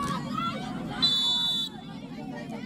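A referee's whistle blows once, short and sharp.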